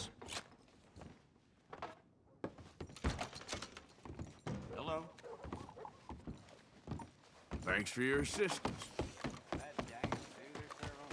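Boots thud on wooden floorboards.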